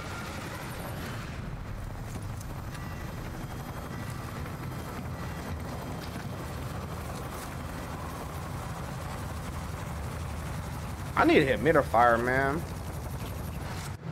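A helicopter engine rumbles low and steady.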